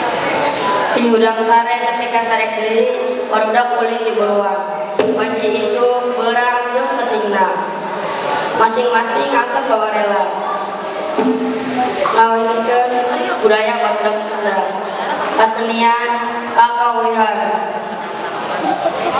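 A young man sings into a microphone, heard through loudspeakers in a large echoing hall.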